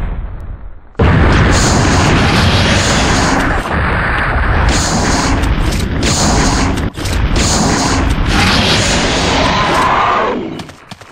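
A large creature roars and growls loudly.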